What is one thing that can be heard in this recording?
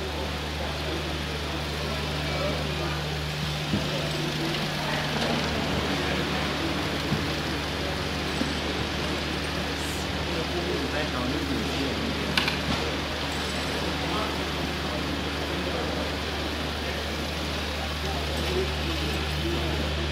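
An audience murmurs quietly in a large, echoing hall.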